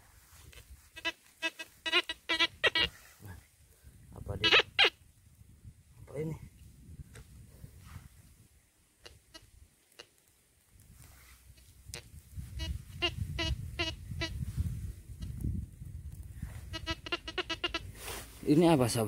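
A metal detector beeps in quick, repeated bursts.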